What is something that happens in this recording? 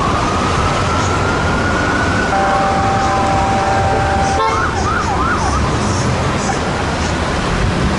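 Traffic hums steadily on a busy street.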